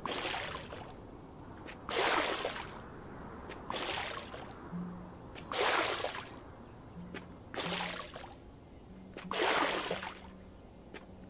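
Water splashes from a watering can in short, repeated bursts.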